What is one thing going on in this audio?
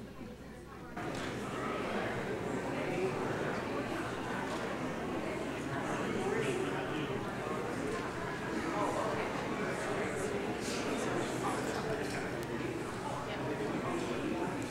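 A crowd of people chatter and murmur in a large echoing hall.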